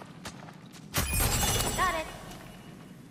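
A burst of magic crackles and sizzles with a loud whoosh.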